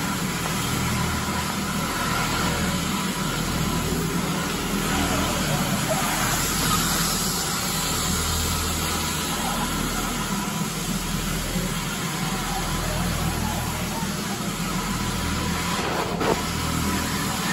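A floor scrubbing machine hums and whirs steadily as it rolls across a hard floor.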